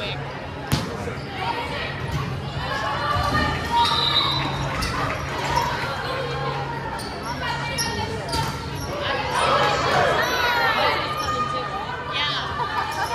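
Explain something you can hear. Girls shout and call out to each other across the court.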